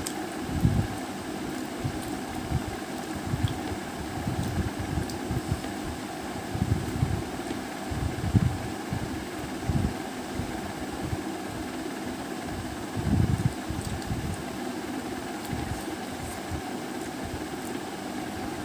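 Fingers tear a fried flatbread.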